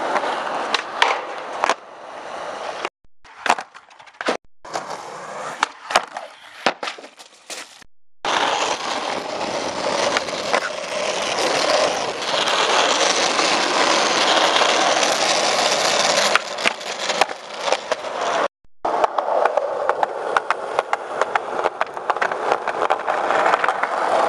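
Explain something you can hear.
A skateboard clacks and snaps against concrete during tricks.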